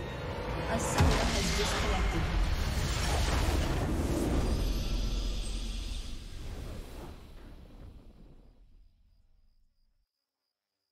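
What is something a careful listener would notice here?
A triumphant victory fanfare plays and fades out.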